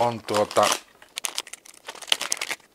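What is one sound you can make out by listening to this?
A plastic wrapper crinkles as it is opened.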